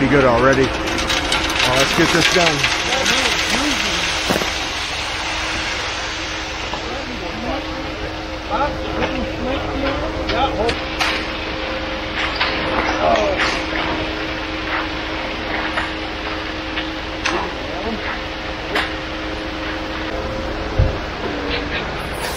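Wet concrete pours and splashes from a chute.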